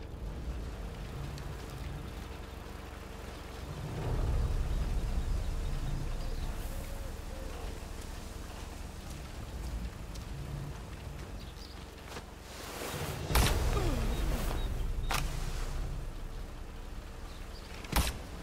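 Footsteps rustle through grass and dirt.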